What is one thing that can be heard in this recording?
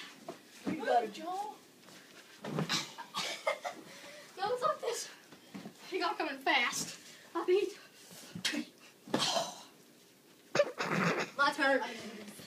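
Pillows thump against a bed and bodies.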